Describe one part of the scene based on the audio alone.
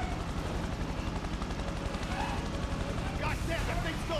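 Helicopter rotors thump overhead.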